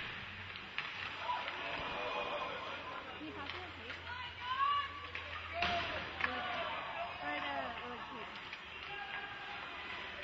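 Spectators shout and cheer from the stands.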